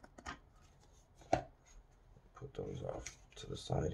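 Playing cards slide and tap against each other.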